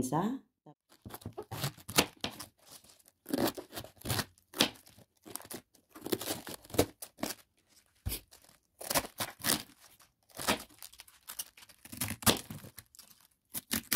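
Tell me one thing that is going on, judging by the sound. A knife cuts through a cabbage with crisp crunching.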